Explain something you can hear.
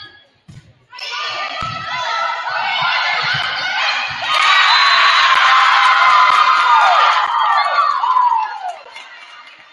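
A small crowd cheers and claps in an echoing hall.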